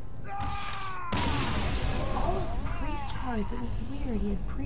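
Game sound effects crackle and boom.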